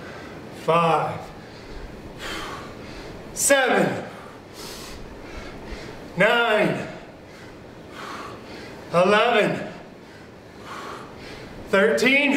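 A man calls out short, loud bursts with effort, close by.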